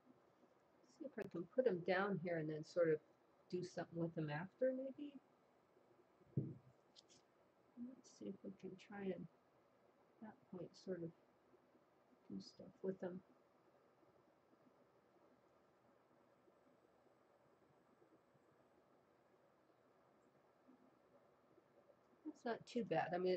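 An elderly woman speaks calmly close to a microphone.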